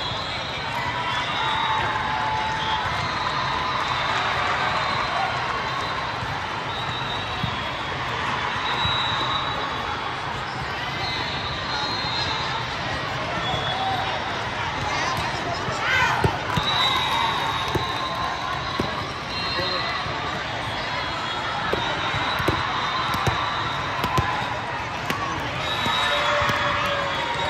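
A crowd of voices murmurs and calls out throughout.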